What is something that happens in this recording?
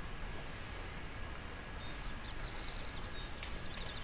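A dog runs through dry grass.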